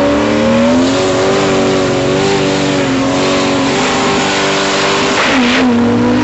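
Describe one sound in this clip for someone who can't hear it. A drag racing engine idles loudly with a rough, throbbing rumble.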